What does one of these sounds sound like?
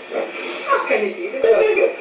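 A woman laughs close by.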